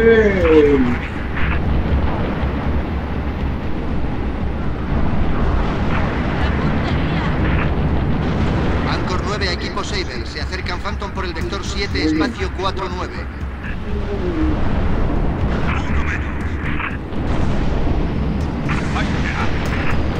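Spaceship engines roar steadily.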